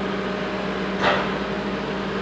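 A metal truck bed thuds down onto a frame.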